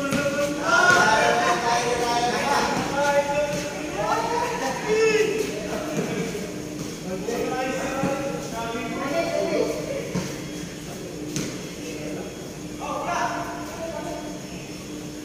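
Young men call out and talk to each other in a large, echoing space.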